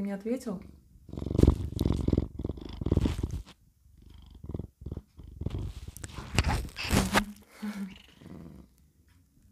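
A cat chews and bites on a microphone, making rough scraping and thumping noises.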